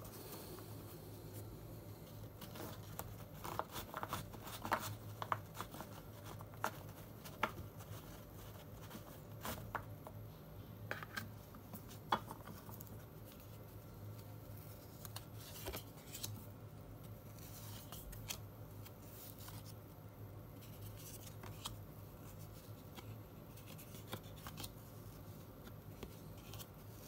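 Fingers flick through a stack of trading cards, with soft clicks and rustles.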